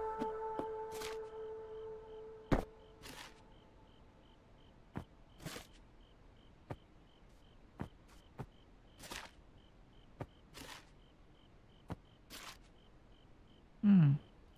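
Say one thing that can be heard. Light clicks and soft thuds sound as objects are set down.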